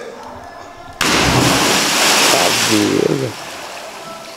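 A person plunges into deep water with a loud splash.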